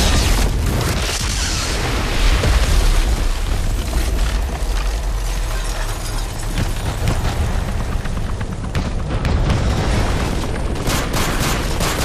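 Explosions boom and rumble deeply.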